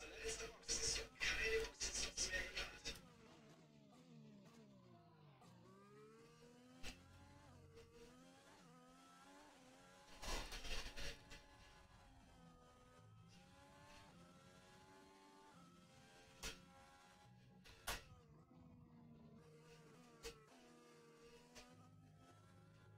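A racing car engine whines, rising and falling in pitch as it shifts gears.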